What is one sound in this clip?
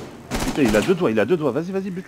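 A gun fires a burst of shots.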